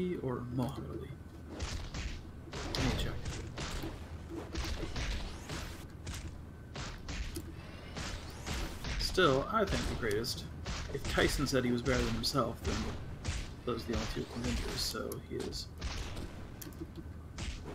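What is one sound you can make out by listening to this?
Punches and kicks thud in a fast brawl.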